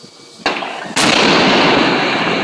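A rumbling roar of collapsing debris follows the blast.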